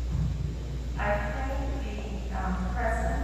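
A woman speaks calmly through a microphone in an echoing hall.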